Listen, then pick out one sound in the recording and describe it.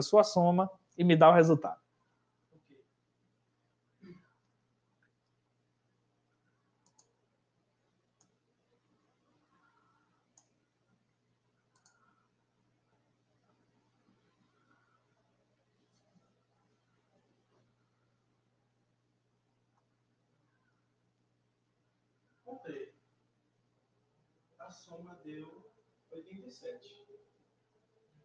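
A man speaks with animation over an online call, in short bursts with long pauses.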